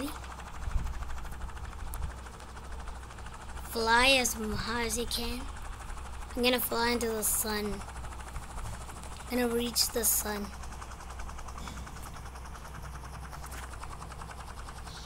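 A video game jet engine hums.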